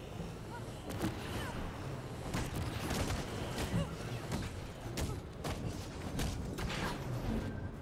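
Gunfire and energy blasts crack and boom in quick bursts.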